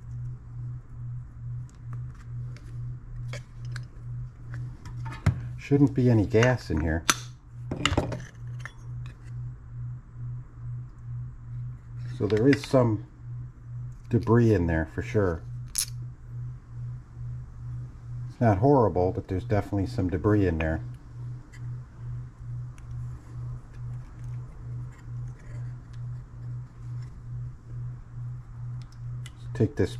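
Small metal engine parts click and rattle as they are handled.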